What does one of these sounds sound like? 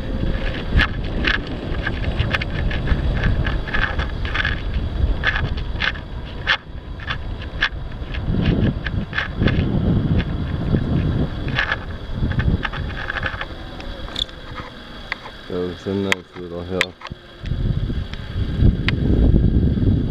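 Wind rumbles against a microphone outdoors.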